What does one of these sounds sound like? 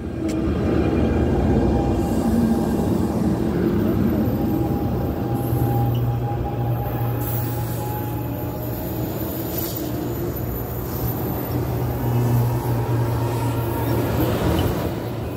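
A passenger train rumbles and clatters past close by.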